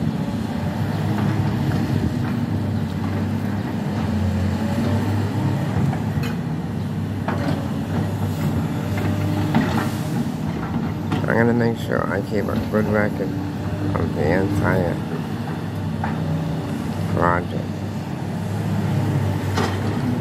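An excavator bucket scrapes and dumps dirt.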